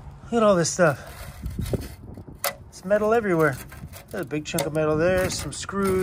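Small metal bits click against a metal bar.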